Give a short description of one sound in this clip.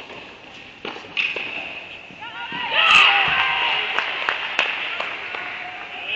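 Tennis rackets strike a ball in a large echoing hall.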